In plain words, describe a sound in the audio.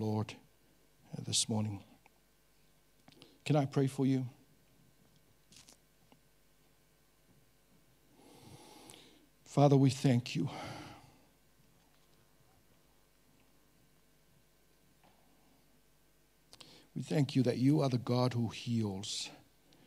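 A middle-aged man speaks slowly and with feeling through a microphone, with long pauses.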